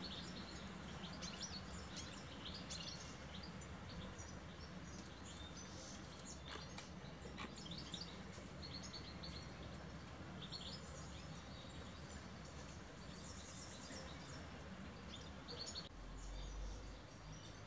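A squirrel nibbles and crunches food close by.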